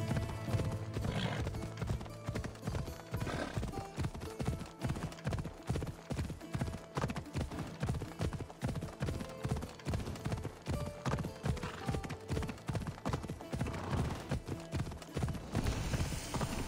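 Horse hooves thud rhythmically on grassy ground at a trot.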